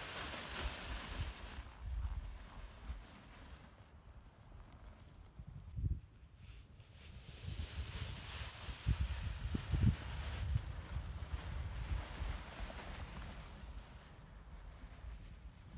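Wind gusts and buffets outdoors.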